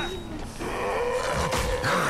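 An axe thuds heavily into a body.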